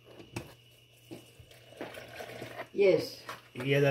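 Liquid pours into a blender jar.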